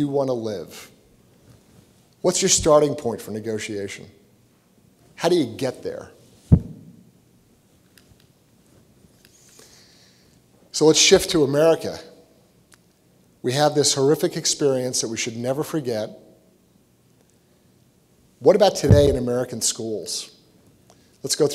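A man speaks steadily into a microphone, pausing between phrases.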